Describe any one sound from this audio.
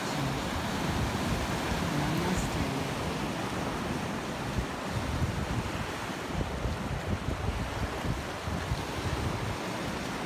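Wind blows outdoors, rumbling.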